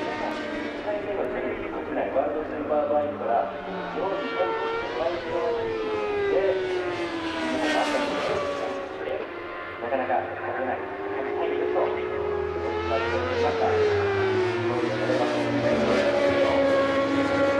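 Racing motorcycle engines roar past, rising and falling in pitch.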